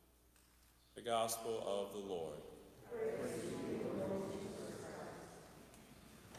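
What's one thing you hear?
A man chants into a microphone, echoing through a large hall.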